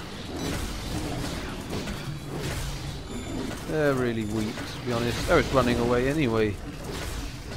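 Big cats growl and snarl.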